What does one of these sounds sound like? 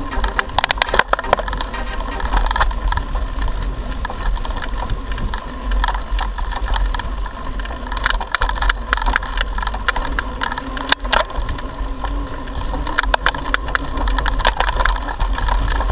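A bicycle's frame and chain clatter over bumps.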